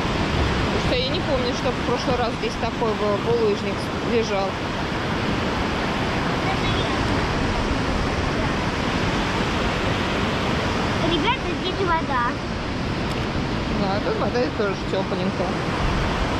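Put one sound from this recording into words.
A young child talks nearby in short bursts.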